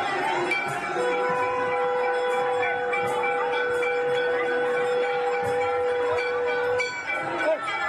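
A conch shell blows a long, steady, loud note.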